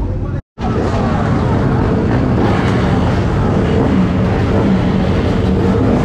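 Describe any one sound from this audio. A motorcycle engine revs up close.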